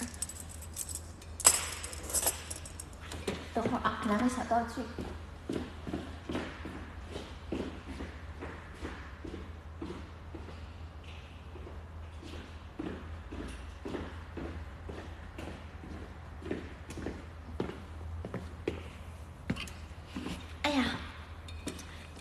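A young woman speaks close to a phone's microphone.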